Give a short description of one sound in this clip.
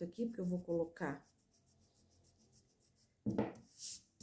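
An eraser rubs back and forth on paper.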